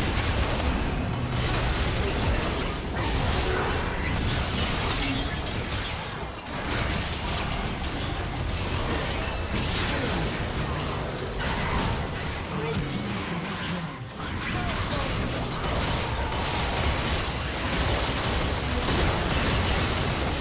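Fantasy combat effects crackle and burst.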